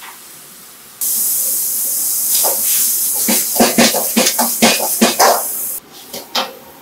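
Food sizzles loudly in a hot wok.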